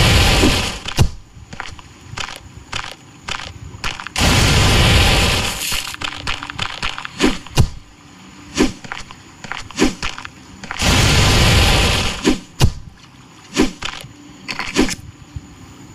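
A spear strikes with sharp, repeated thuds.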